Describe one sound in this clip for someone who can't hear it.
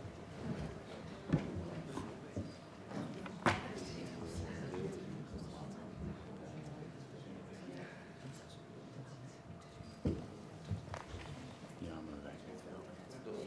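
Two men talk quietly to each other nearby.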